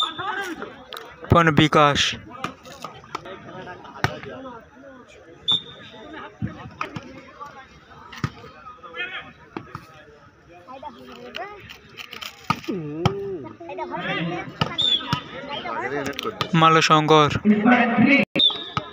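Young men players shout to each other during play.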